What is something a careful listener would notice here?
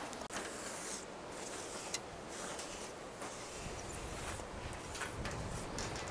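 An aerosol can hisses as it sprays.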